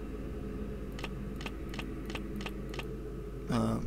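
Short clicks tick in quick succession.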